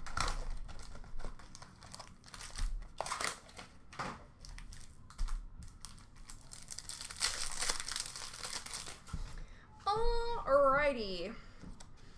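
Cards rustle and slide as hands sort through a pack.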